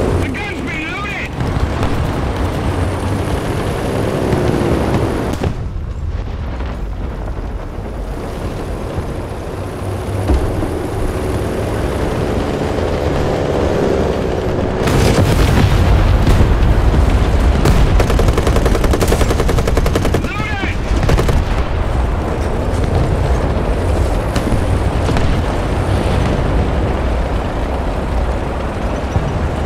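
A tank engine rumbles and roars steadily.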